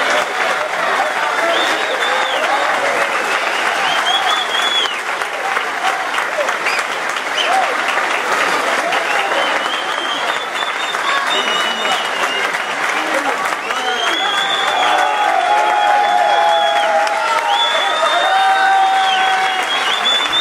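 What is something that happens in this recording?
People clap and applaud.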